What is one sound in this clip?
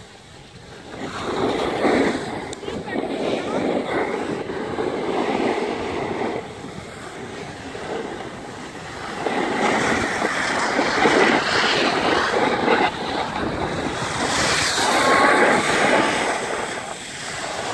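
Snowboard and ski edges scrape and hiss over packed snow.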